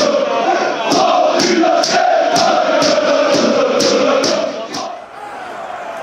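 A large crowd of fans sings and chants loudly in an open stadium.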